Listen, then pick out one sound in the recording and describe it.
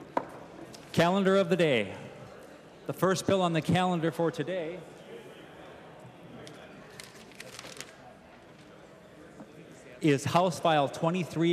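A man speaks formally through a microphone in a large echoing chamber.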